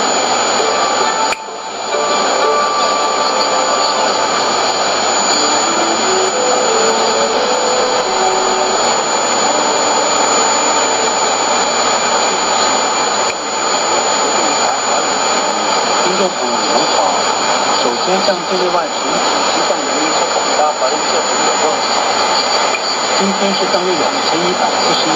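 A shortwave radio plays a faint, crackling broadcast through heavy hiss and static.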